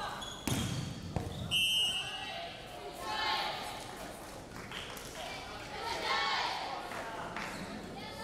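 Young women shout and cheer together in a large echoing hall.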